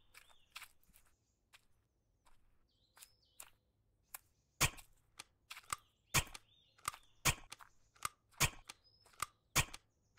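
Footsteps thud steadily across soft ground.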